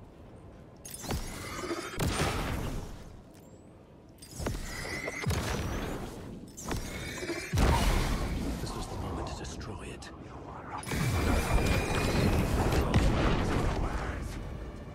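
Gunshots crack and echo in quick bursts.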